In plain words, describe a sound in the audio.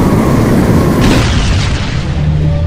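An explosion booms and crackles.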